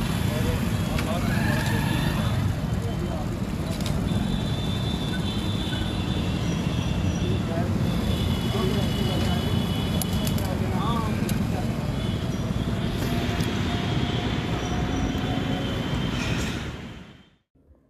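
A motorcycle engine runs close by.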